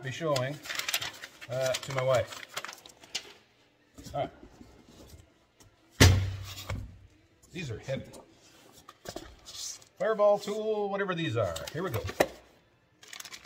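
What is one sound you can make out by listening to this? Cardboard and paper rustle as a box is unpacked.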